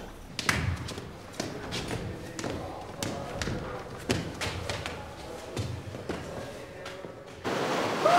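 A woman speaks urgently, close by.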